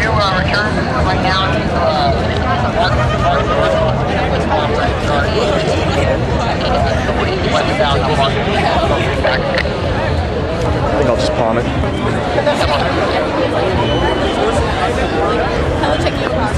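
A large crowd chatters and cheers loudly outdoors.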